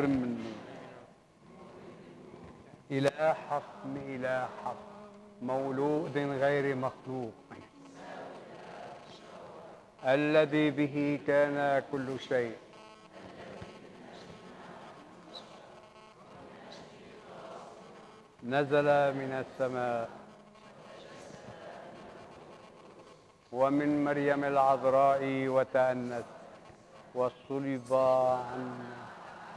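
A man chants slowly in a sung voice with a slight echo.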